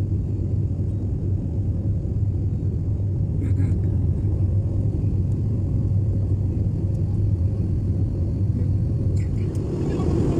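Jet engines roar steadily with a deep hum inside an airliner cabin.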